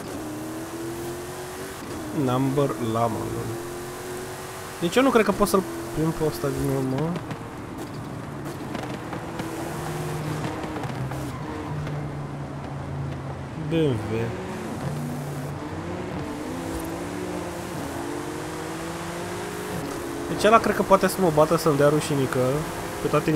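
A car engine roars steadily as the car speeds along.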